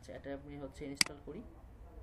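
A mouse button clicks once.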